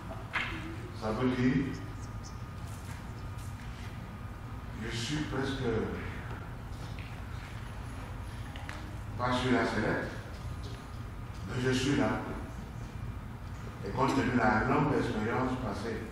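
A man preaches in short bursts through a microphone in an echoing hall.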